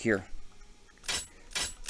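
A metal lock pick clicks inside a lock.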